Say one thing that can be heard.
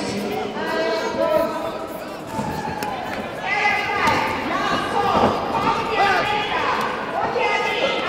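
Kicks and punches land with dull thuds.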